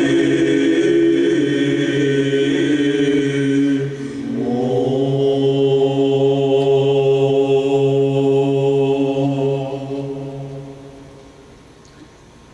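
A male choir chants slowly in sustained harmony in a large hall.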